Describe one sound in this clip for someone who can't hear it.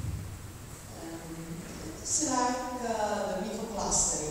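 A man speaks calmly in a large echoing hall.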